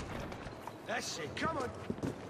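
A horse whinnies nearby.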